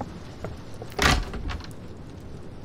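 Wooden cupboard doors creak and shut with a thud.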